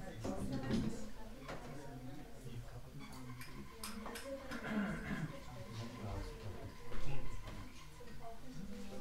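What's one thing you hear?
A group of people sings along softly.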